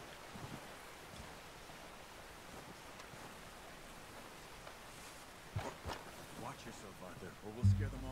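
Footsteps crunch softly through deep snow.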